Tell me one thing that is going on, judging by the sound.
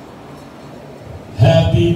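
A woman sings loudly through a microphone and loudspeakers in a large room.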